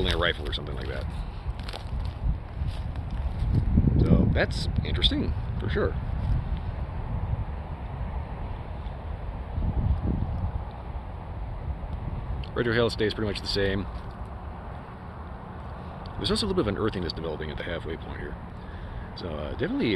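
A middle-aged man talks calmly and close by, in bursts.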